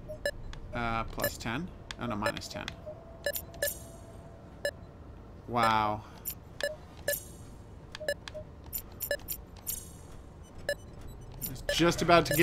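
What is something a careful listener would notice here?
Electronic buttons click and beep as a control panel is adjusted.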